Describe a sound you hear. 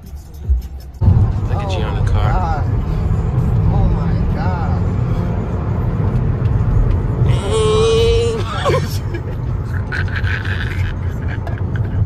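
A car hums and its tyres rumble steadily along the road.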